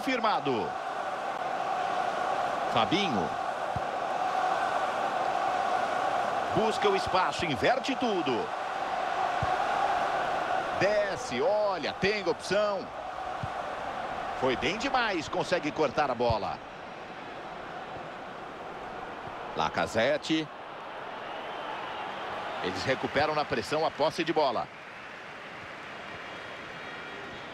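A large crowd murmurs and roars steadily in a stadium.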